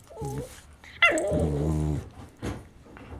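A dog yelps in a high pitch.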